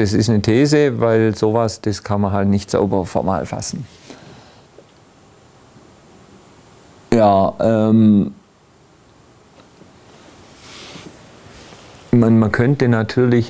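An older man speaks calmly into a clip-on microphone, pausing between phrases.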